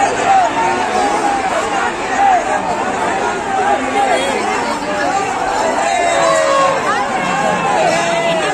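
A large crowd of men and women shouts and cheers loudly all around, close by.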